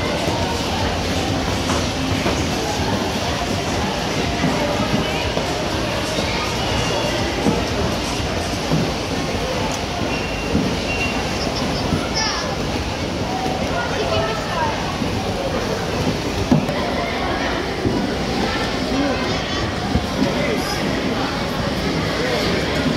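A crowd of children and adults chatter and call out in a large echoing space.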